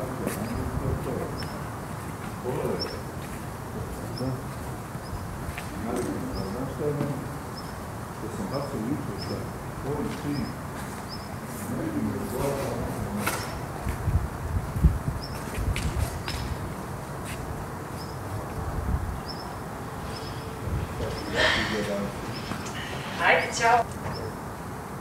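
A young woman speaks in a conversation close by.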